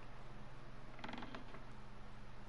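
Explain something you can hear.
A wooden door creaks as it swings shut.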